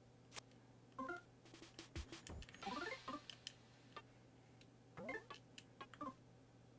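Short electronic chimes and blips from a retro video game play now and then.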